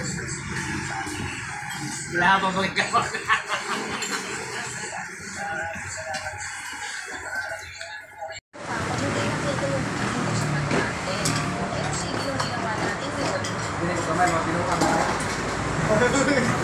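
Men talk and laugh loudly close by.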